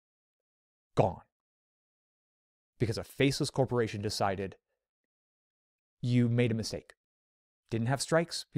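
A man speaks calmly and close into a microphone, with pauses between phrases.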